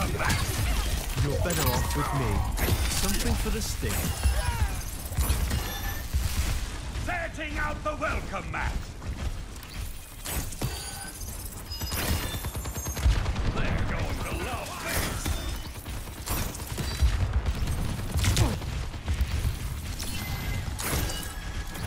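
Gunfire and energy blasts crack and boom rapidly.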